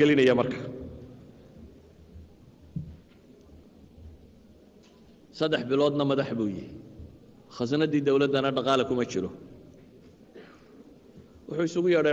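A man speaks forcefully into a microphone, with pauses between phrases.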